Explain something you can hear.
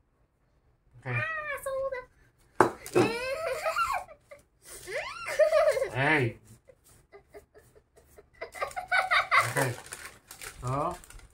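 A young girl talks and laughs excitedly close by.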